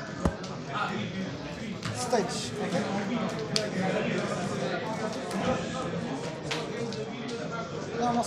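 Cards rustle as a player handles a deck.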